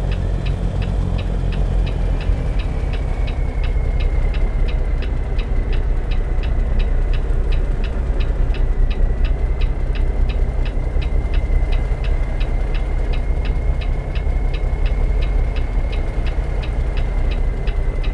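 A reversing alarm beeps steadily and rapidly.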